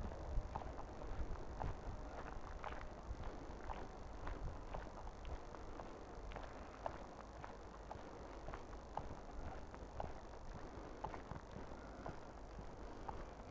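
Wind rumbles and buffets outdoors.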